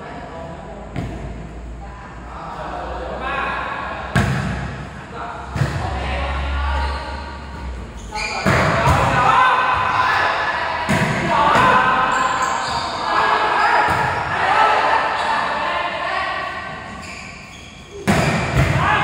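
A volleyball is struck with sharp slaps.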